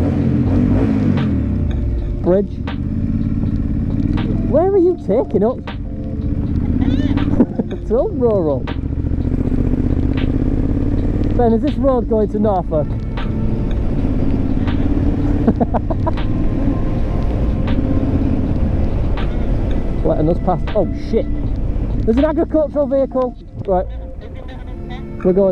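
A motorcycle engine rumbles close by and rises and falls in pitch as it revs.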